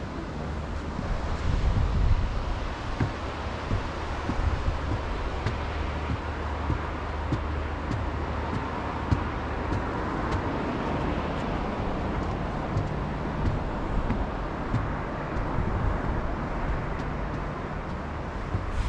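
Footsteps thud on hollow wooden stairs.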